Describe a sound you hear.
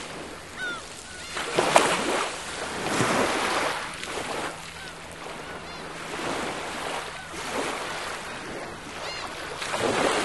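Seagulls call in the distance.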